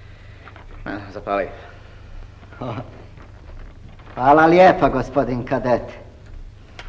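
A man speaks a few words.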